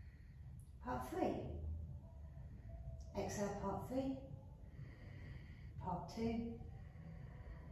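A young woman speaks calmly and slowly, close by, in short phrases with pauses.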